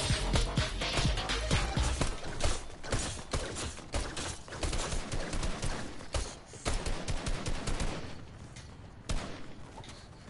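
Game pickaxes whack and clatter in quick bursts.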